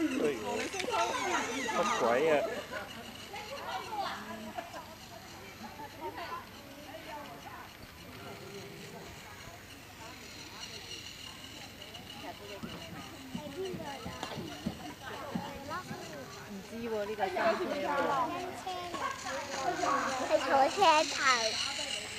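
A young child talks excitedly nearby.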